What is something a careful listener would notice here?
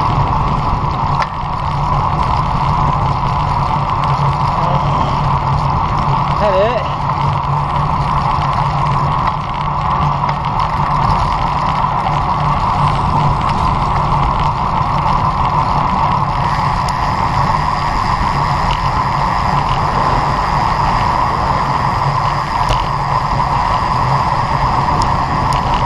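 Bicycle tyres hum on rough asphalt.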